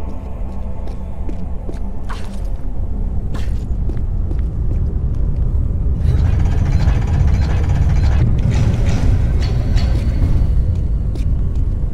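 Footsteps run across a stone floor.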